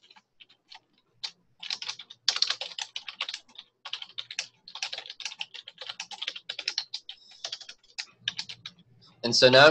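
Keys click quickly on a keyboard.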